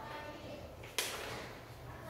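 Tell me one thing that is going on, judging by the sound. A magnet clicks against a board.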